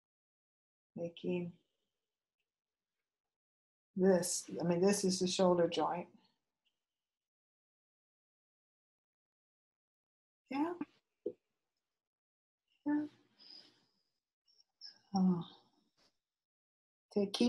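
An older woman speaks calmly in short bursts, close to a microphone, with pauses between.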